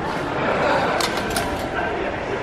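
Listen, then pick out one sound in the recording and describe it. A ticket gate chimes.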